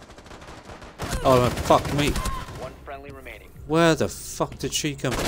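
Gunfire bursts out loudly.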